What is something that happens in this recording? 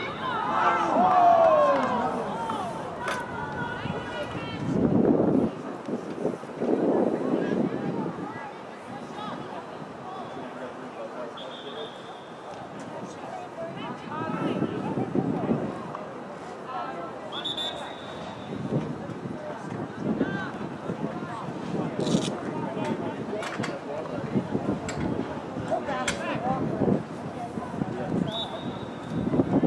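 Young women shout and call to each other across an open field outdoors.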